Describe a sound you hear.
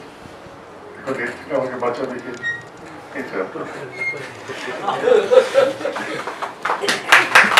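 An elderly man speaks with feeling into a microphone, heard through a loudspeaker in an echoing room.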